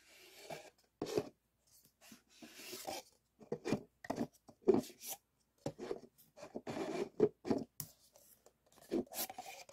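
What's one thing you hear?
Paper cups tap down on a table.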